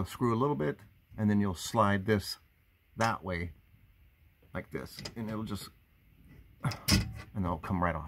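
A metal fitting clicks and rattles under a hand.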